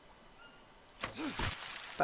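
Water splashes sharply as a spear strikes it.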